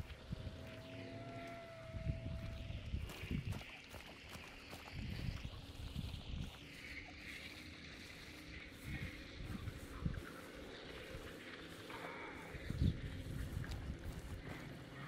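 Footsteps thud softly through grass at a steady walking pace.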